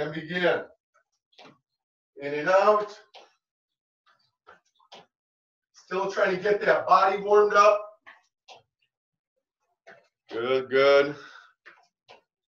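A middle-aged man speaks up close in short bursts, coaching with animation.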